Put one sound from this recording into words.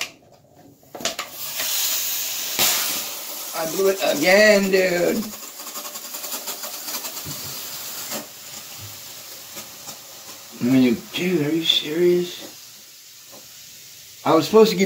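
Fizzy soda foams and hisses out of a bottle.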